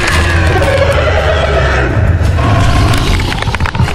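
A huge creature roars with a deep growl.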